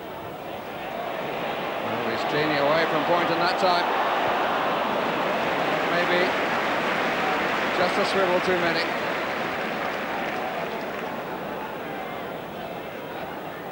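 A large crowd roars in an outdoor stadium, swelling and then easing off.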